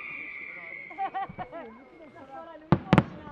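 Fireworks crackle briefly.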